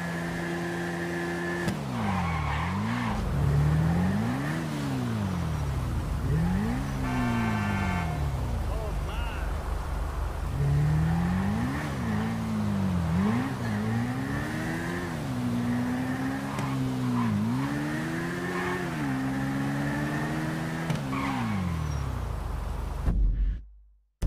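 A motorcycle engine revs up and down as it speeds along.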